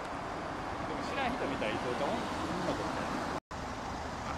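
Young women chat at a distance outdoors.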